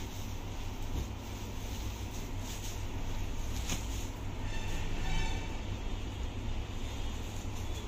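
Cloth rustles and flaps as fabric is handled.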